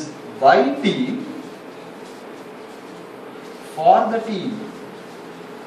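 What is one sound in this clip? A man speaks calmly up close, in short phrases.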